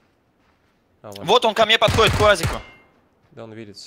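Gunshots ring out in quick succession.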